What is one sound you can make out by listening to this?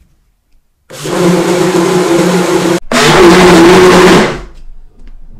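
A blender motor whirs loudly.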